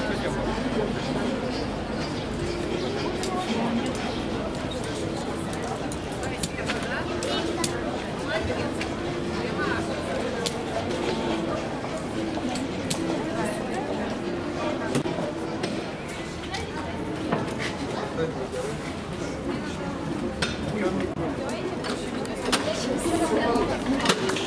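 Tools clink and tap on a table.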